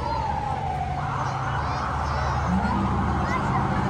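A fire truck air horn blasts.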